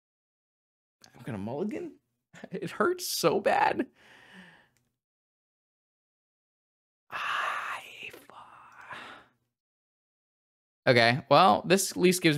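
A young man talks with animation close to a microphone, in bursts with pauses.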